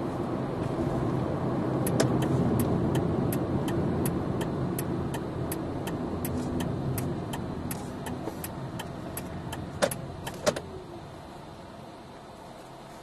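A car engine hums and tyres rumble on the road, fading as the car slows to a stop.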